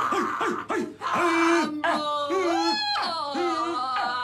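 A man sings and wails loudly.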